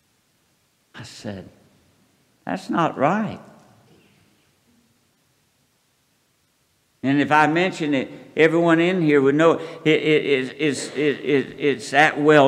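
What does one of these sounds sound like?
An elderly man speaks slowly into a microphone, heard through loudspeakers in a large room.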